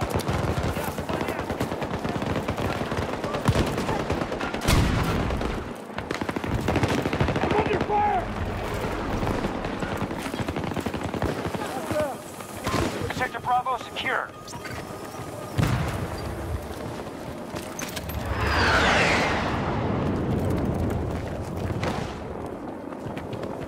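Footsteps thud quickly on hard ground as a soldier runs.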